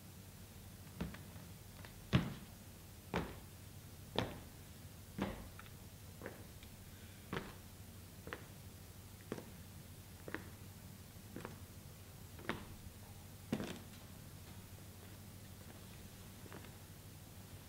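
Footsteps thud slowly across a wooden stage floor.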